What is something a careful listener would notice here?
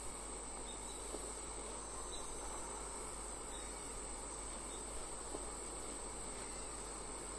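Footsteps tread on a hard floor indoors.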